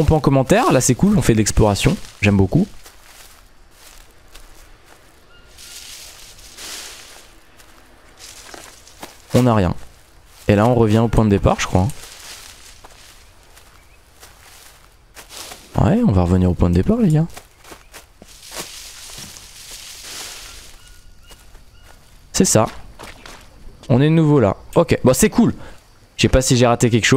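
Footsteps rustle through dense leafy undergrowth.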